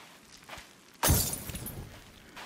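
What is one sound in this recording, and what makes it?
A glass bottle smashes on the ground.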